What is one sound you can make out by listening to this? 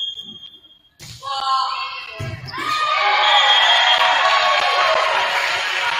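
A volleyball thumps off a player's hands.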